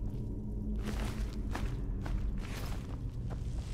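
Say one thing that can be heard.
Coins clink together.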